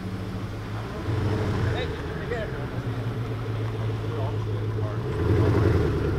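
A sports car engine revs loudly and rumbles as the car drives slowly past.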